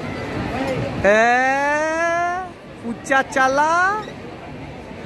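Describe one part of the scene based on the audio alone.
A young child squeals with delight close by.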